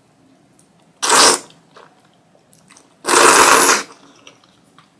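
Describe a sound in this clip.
A young woman slurps noodles loudly, up close.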